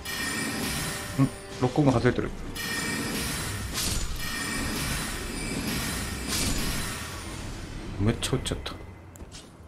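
A magic spell crackles and whooshes loudly.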